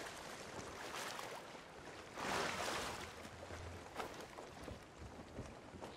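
Footsteps thud on wooden rungs and boards.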